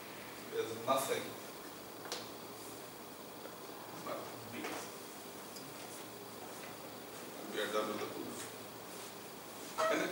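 A man speaks calmly in a slightly echoing room.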